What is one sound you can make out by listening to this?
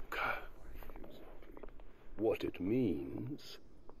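A deep-voiced man answers calmly and coldly.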